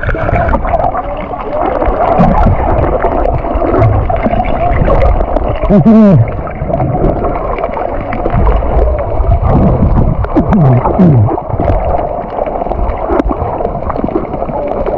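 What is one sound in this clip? Underwater, a muffled, bubbling rush of water goes on throughout.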